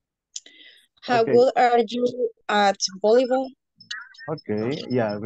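A woman speaks clearly through an online call, explaining in a teaching tone.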